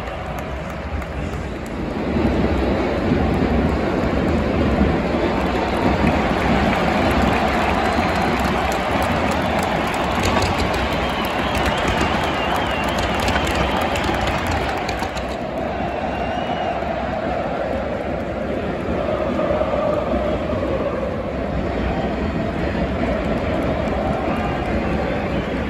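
A large stadium crowd roars and chants loudly outdoors.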